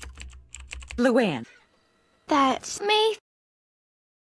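A middle-aged woman speaks with animation, close by.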